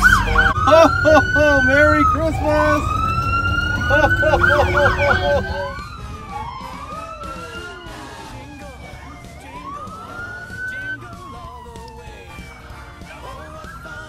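Police sirens wail and warble close by.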